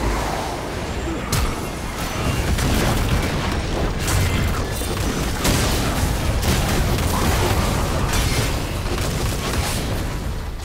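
Spell blasts and impacts crackle and boom in a fast game battle.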